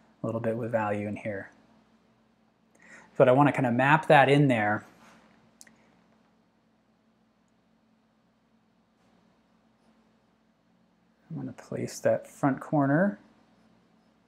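A man speaks calmly into a close microphone, in short bursts with pauses.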